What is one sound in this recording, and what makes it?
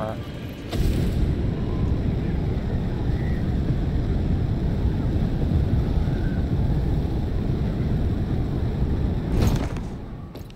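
A jetpack roars steadily in a low rush.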